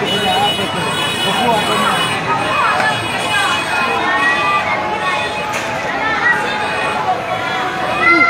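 A crowd of men and women shout and talk excitedly nearby.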